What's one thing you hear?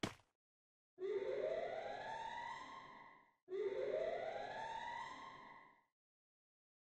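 A rising, shimmering game effect plays twice.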